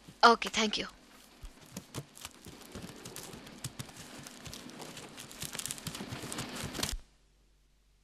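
Printing machines clatter steadily.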